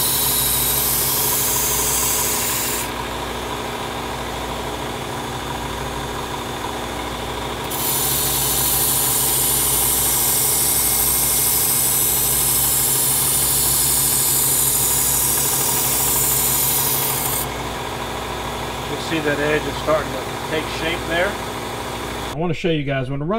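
A small electric motor hums steadily.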